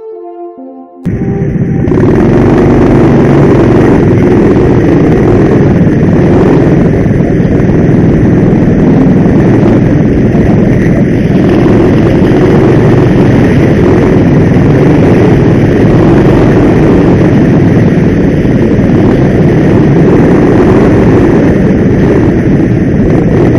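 A go-kart engine roars loudly up close, rising and falling as the kart speeds around bends.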